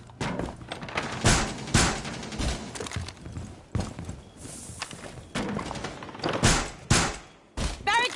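Heavy blows thud and crack against wooden boards.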